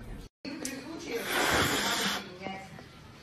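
A cat hisses sharply.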